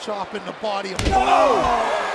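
A heavy body thuds onto a wrestling ring mat.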